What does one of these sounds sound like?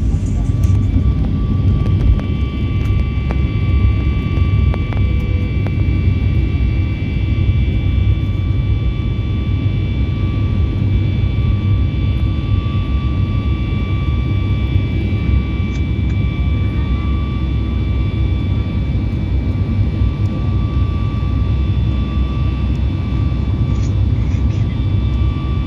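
Jet engines roar steadily as an airliner takes off and climbs.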